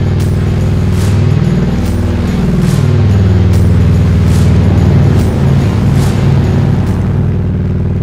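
Wind rushes past a motorcycle rider at speed.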